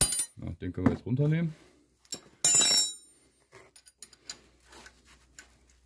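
A metal wrench clinks and scrapes against metal parts.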